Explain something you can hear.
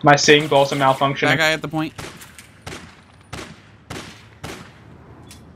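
A gun fires single shots.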